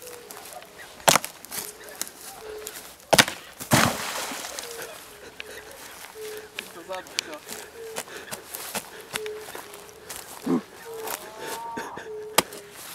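A hatchet splashes and chops in shallow water.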